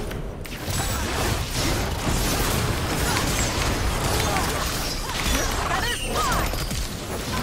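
Video game combat effects clash and crackle loudly.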